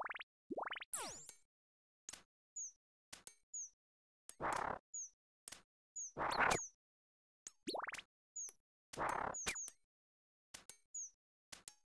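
A bow fires arrows in a video game.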